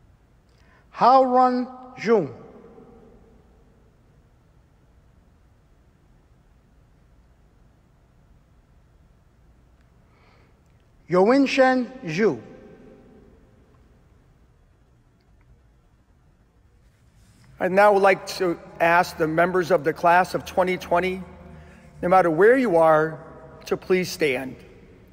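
A middle-aged man reads out names and then speaks calmly into a microphone in an echoing hall.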